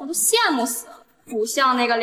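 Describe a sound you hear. A young woman speaks with mock envy, close by.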